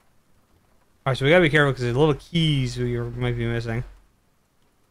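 A young man speaks briefly and expressively into a close microphone.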